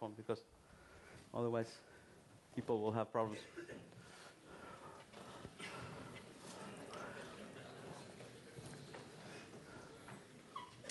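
A man speaks through a microphone in a large, echoing hall.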